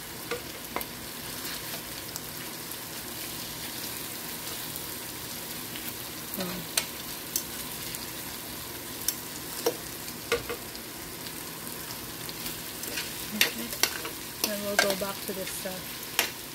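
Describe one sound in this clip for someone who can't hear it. Food sizzles and simmers steadily in a pan.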